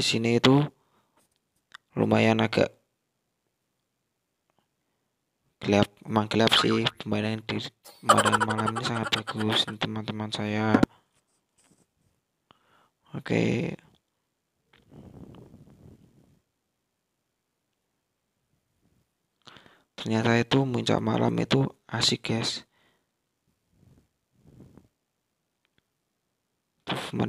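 A man talks loudly and animatedly close by.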